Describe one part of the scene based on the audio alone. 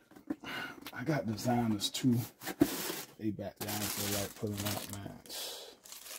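A shoebox lid rustles and slides open.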